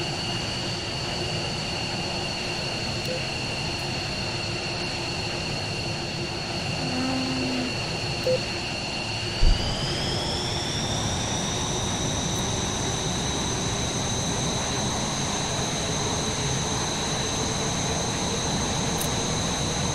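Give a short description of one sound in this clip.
A jet engine whines steadily, then rises in pitch as it spools up.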